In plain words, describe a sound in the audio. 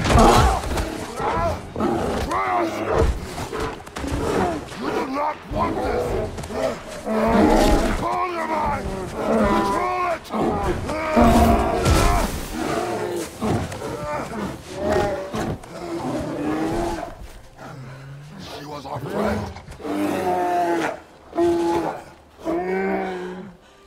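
A man speaks in a deep, low, stern voice.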